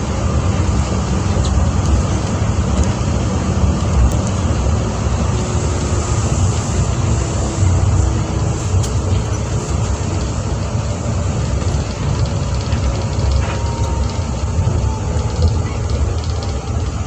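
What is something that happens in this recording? An electric train motor whines, slowly shifting in pitch.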